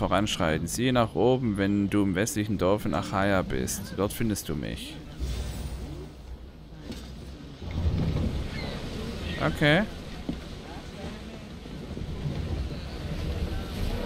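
Water washes against the hull of a sailing ship.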